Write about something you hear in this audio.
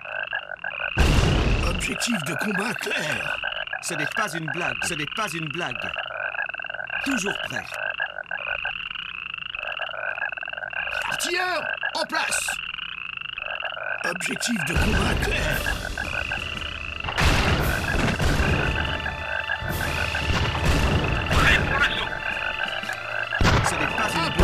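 Artillery shells explode with heavy booms.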